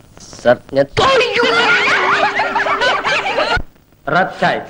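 Young girls laugh loudly together.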